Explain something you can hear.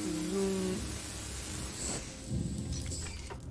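A cutting torch hisses and crackles with sparks.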